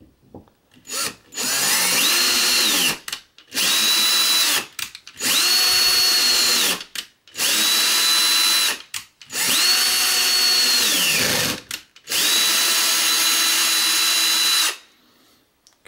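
A cordless drill whirs in repeated bursts, boring into metal.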